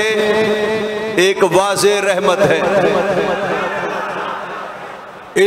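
An elderly man chants melodiously into a microphone, heard through loudspeakers with a lingering echo.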